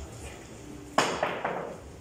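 A cue strikes a pool ball with a sharp click.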